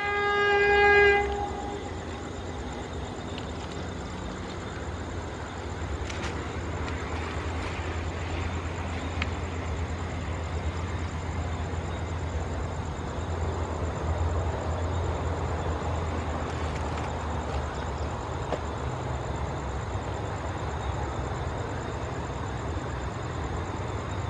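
A distant train rumbles as it approaches along the track.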